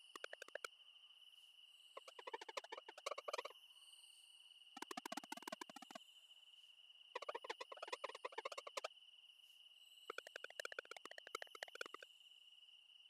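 Quick electronic blips chatter in rapid bursts.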